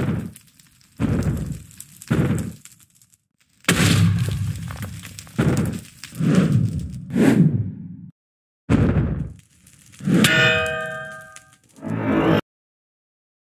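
Heavy blows thud and crash in quick bursts as a video game creature attacks.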